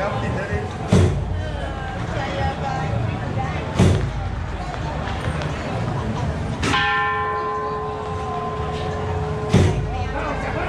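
Single firecrackers bang sharply now and then.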